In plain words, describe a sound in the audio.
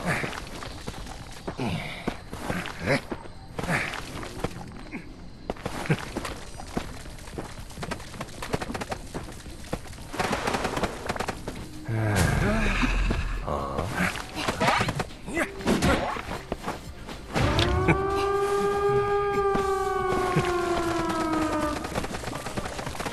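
Footsteps tread quickly over the ground.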